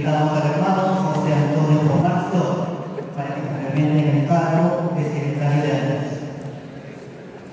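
A man speaks steadily into a microphone, heard through a loudspeaker in an echoing hall.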